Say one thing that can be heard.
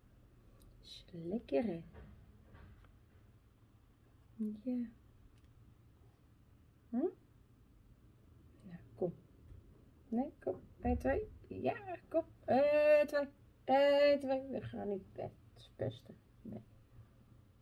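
A woman talks casually and close by, with pauses.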